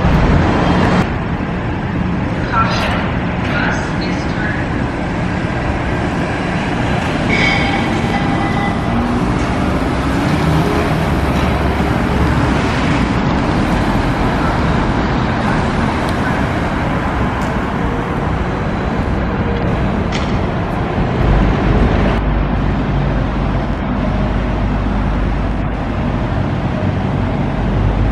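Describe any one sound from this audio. A bus engine rumbles as it drives by.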